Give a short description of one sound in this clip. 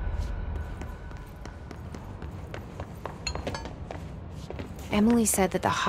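Footsteps run quickly on a hard floor.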